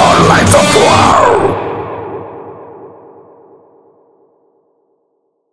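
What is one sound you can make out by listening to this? An electric guitar plays distorted chords and rings out.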